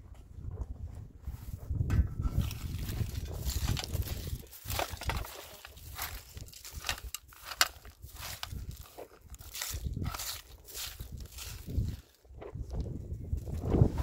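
A broom sweeps and scrapes across dirt.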